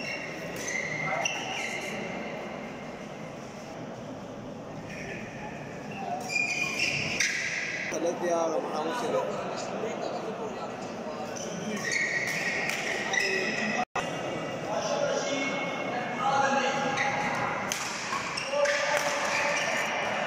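Shoes squeak sharply on a court floor.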